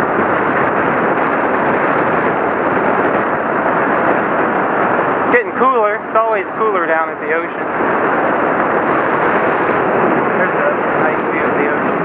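Wind rushes loudly past a moving rider outdoors.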